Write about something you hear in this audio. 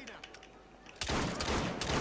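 A gunshot cracks.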